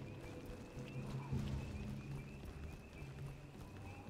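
Footsteps tread on the ground.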